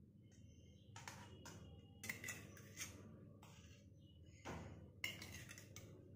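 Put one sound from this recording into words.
A metal spoon scrapes and taps against a metal pan.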